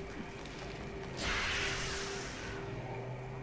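An explosion booms and rumbles.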